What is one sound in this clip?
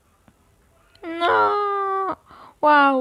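A bright game jingle plays as points are scored.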